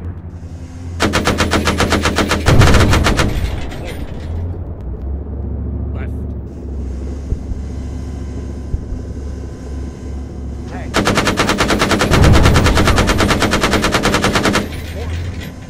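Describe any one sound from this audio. Rapid cannon fire rattles in long bursts.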